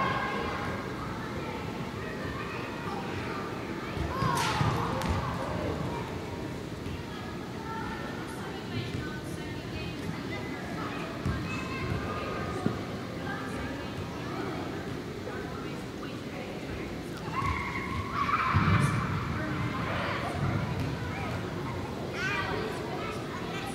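A soccer ball is kicked with dull thuds.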